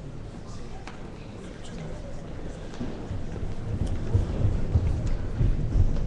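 A crowd of girls chatters as they get up and move about.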